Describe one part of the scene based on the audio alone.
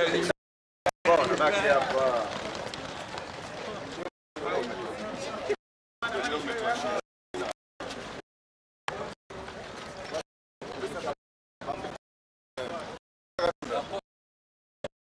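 Men and women chatter and laugh nearby.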